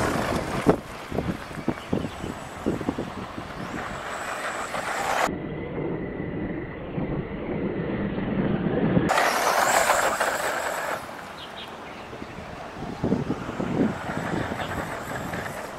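A toy car's electric motor whines as it speeds about.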